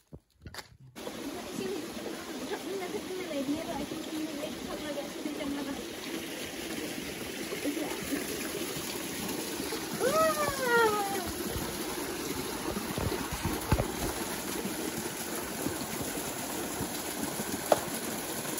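A stream of water splashes steadily over rocks.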